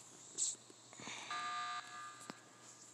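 An electronic alarm blares briefly.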